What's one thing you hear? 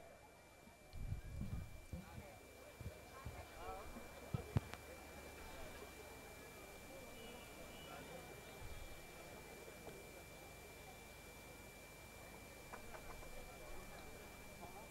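A large crowd murmurs faintly.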